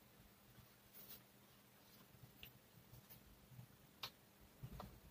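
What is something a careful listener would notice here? A marker cap clicks.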